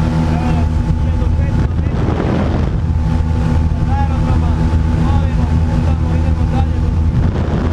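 A man speaks close by, raising his voice over the engine noise.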